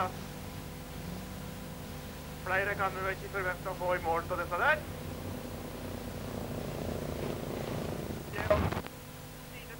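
A racing car's engine roars as the car drives past on a dirt track.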